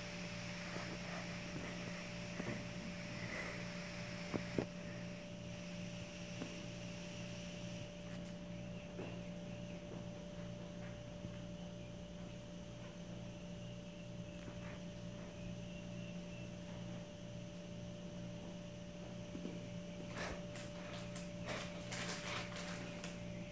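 A cat scrabbles and rustles against a rug.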